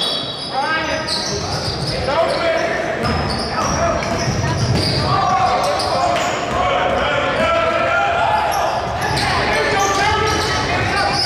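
Spectators shout and cheer from the stands.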